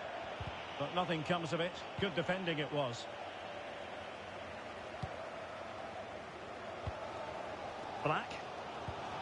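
A football is kicked with dull thumps now and then.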